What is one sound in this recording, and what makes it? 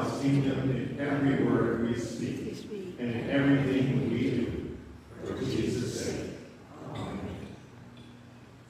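A man speaks calmly over a loudspeaker in a large echoing hall.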